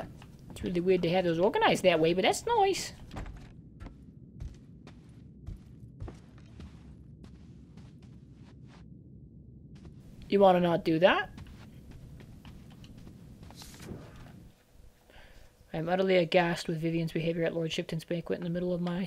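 A young man talks into a microphone in short bursts.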